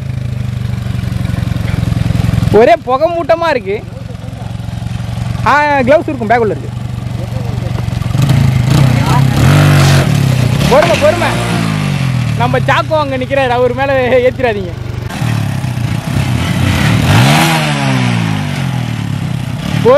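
A motorcycle engine idles with a steady rumble.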